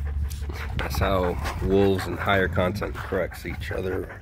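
A dog whines in a high, wavering voice.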